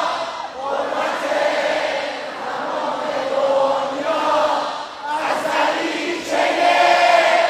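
A crowd sings along loudly in a large echoing arena.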